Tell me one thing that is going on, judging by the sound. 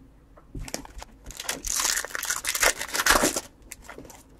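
A foil wrapper crinkles and tears as a pack is ripped open.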